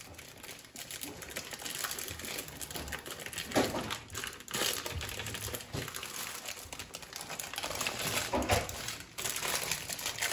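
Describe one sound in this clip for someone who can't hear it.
Parchment paper crinkles and rustles as it is peeled away from a sheet of fruit leather.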